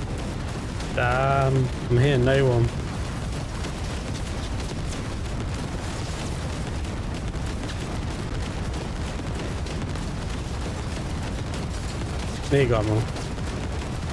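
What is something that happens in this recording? A man speaks briefly and with animation into a close microphone.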